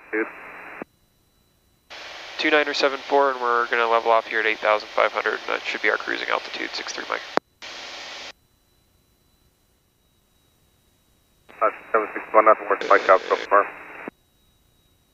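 A man speaks over an aircraft headset intercom.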